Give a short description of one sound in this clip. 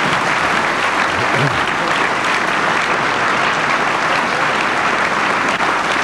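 Many hands clap in steady applause in a large hall.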